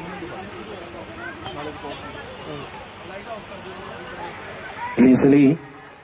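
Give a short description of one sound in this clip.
A crowd of women and children chatters in the background.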